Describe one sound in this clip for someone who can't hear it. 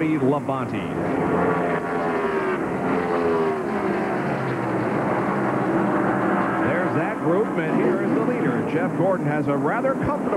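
Race car engines roar at high speed, rising and falling in pitch as cars pass.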